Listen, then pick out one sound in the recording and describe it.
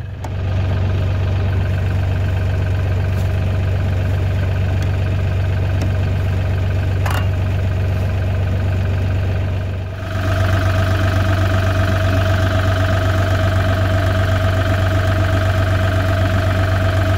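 A tractor engine idles steadily nearby, growing louder partway through.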